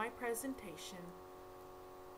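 A woman speaks briefly and calmly, close to a microphone.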